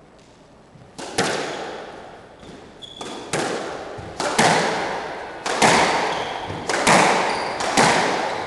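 A squash ball smacks hard against the walls, ringing in an echoing court.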